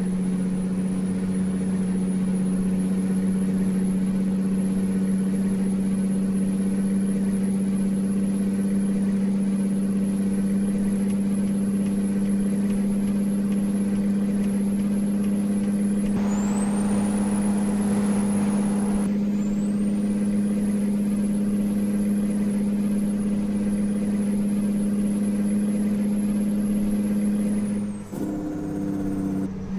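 A truck's tyres hum on the road.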